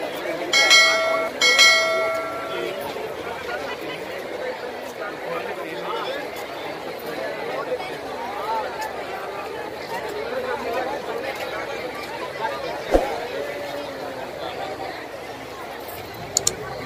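Small waves wash against rocks.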